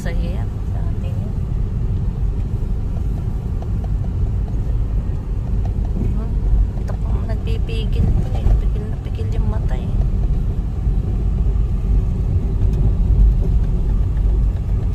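Tyres rumble over a rough dirt road.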